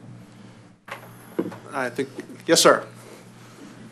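A man speaks briefly over a microphone in a large room.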